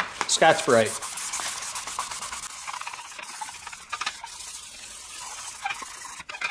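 Sandpaper scrubs back and forth across plastic.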